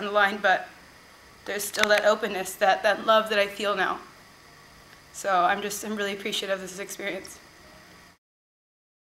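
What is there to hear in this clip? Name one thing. A young woman speaks calmly and earnestly, close by.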